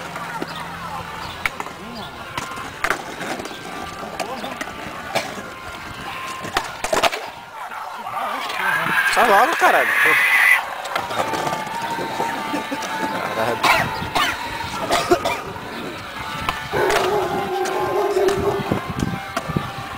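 Skateboard wheels roll and rattle over paving stones.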